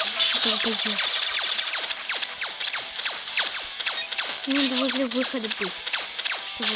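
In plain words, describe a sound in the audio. Video game laser shots fire rapidly in falling zaps.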